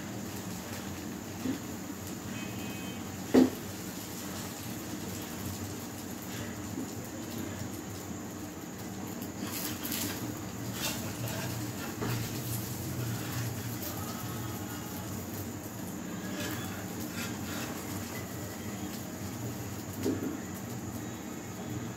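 Batter sizzles in a frying pan.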